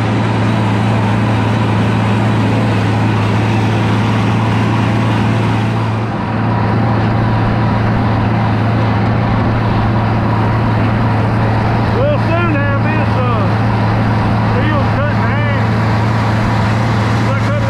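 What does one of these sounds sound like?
Tyres roll over cut grass.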